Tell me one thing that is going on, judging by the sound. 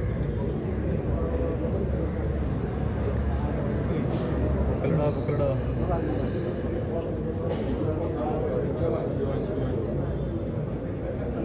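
A crowd of men murmurs and chatters close by.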